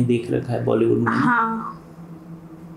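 A young woman speaks briefly close by.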